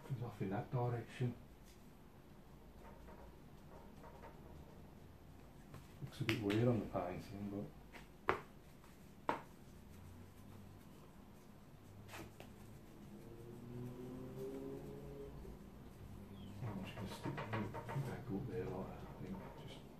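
A wide brush brushes softly across paper.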